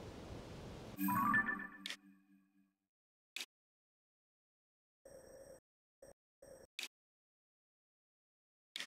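A game menu opens with a chime and beeps softly as it is moved through.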